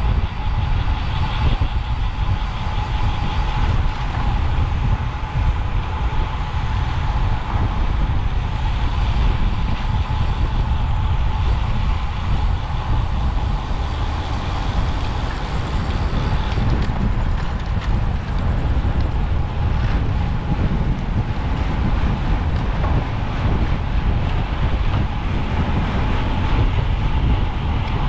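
Strong wind rushes and buffets loudly past, as outdoors at speed.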